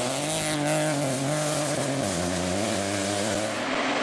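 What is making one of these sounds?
Gravel sprays and rattles under spinning tyres.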